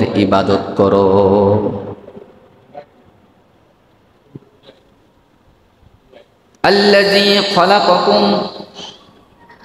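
A man speaks into a microphone, chanting in a drawn-out, melodic voice, with pauses between phrases.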